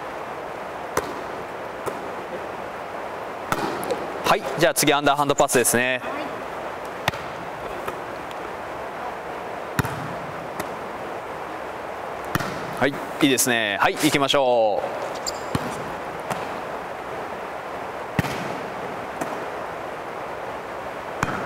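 A volleyball smacks against hands.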